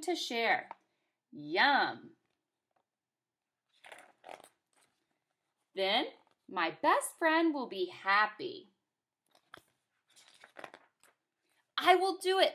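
A young woman reads a story aloud with expression, close to the microphone.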